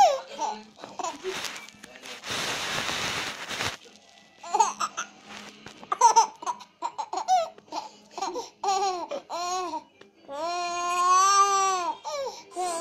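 A baby babbles and squeals with delight close by.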